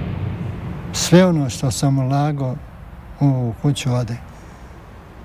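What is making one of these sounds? An elderly man speaks calmly and slowly.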